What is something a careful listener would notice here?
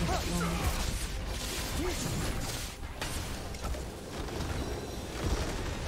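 Game spells and battle effects crash and whoosh.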